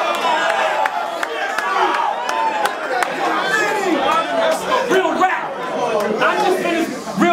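A young man raps loudly and with animation into a microphone.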